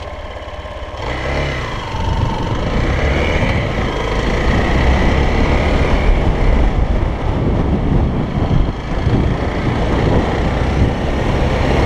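Tyres rumble and crunch over sandy dirt.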